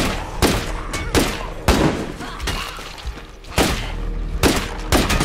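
A heavy weapon strikes bodies with loud, repeated thuds.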